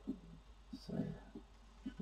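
A paintbrush brushes across paper.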